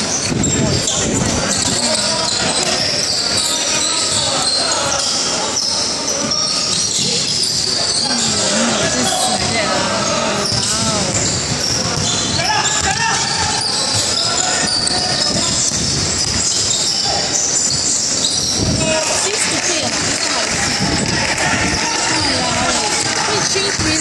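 A crowd of spectators chatters and cheers in a large echoing hall.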